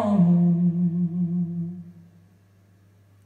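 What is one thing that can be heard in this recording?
A young man sings a long held note close into a microphone, then fades out.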